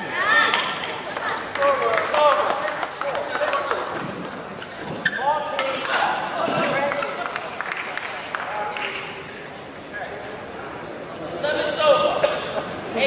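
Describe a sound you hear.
Rackets strike a shuttlecock in a quick rally.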